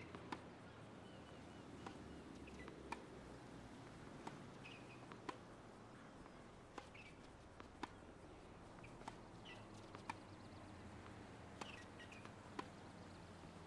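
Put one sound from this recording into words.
Tennis rackets strike a ball back and forth in a rally.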